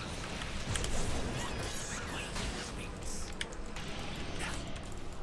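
Magic spells crackle and whoosh in a fast battle.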